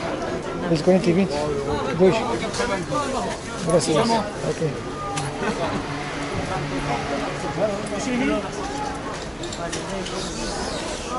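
A crowd murmurs around outdoors.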